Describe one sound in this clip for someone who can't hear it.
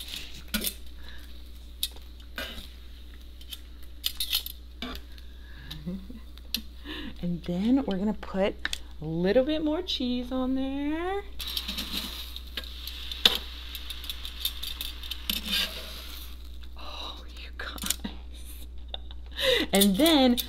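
Bread sizzles on a hot griddle.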